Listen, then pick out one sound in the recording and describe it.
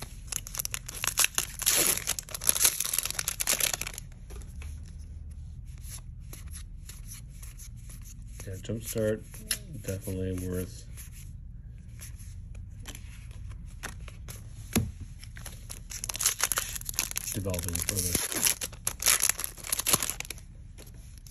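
A foil wrapper crinkles loudly as it is torn open.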